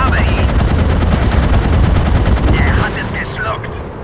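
Shells burst with dull booms.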